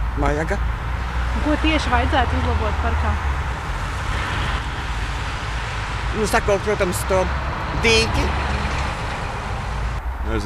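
Traffic hums along a road outdoors.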